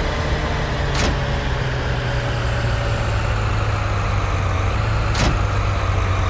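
A metal shovel clanks against the ground.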